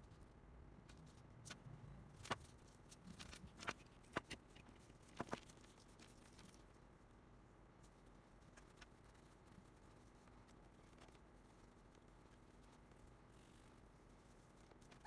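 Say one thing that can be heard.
Cloth rustles as it is crumpled and wiped over a plug.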